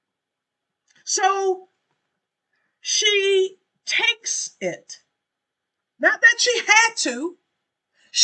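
A middle-aged woman speaks calmly and expressively into a microphone, close by, in short phrases.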